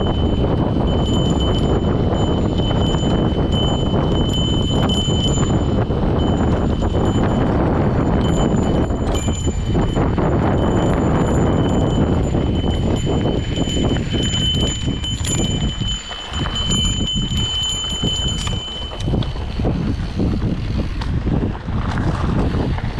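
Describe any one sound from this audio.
Bicycle tyres crunch and rattle over a gravel dirt trail.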